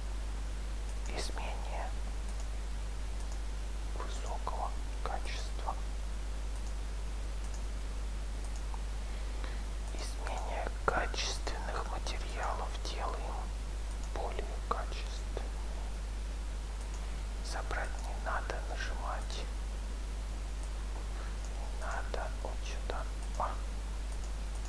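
A young man speaks calmly into a headset microphone, in short bursts.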